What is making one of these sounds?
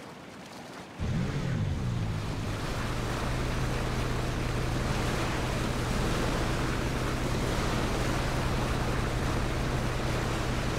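A boat engine starts and roars steadily.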